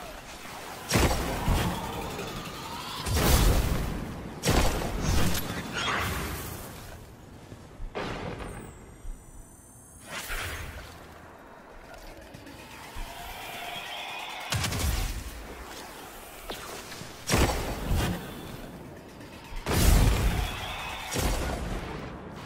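Game rifle shots boom with loud blasts.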